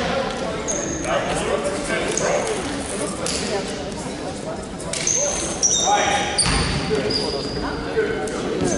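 Young players call out and shout to each other.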